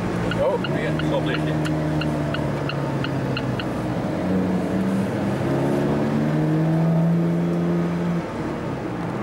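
A car engine hums and revs up as the car speeds along.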